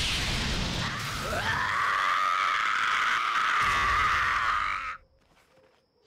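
A monster roars loudly with a rising, wavering howl.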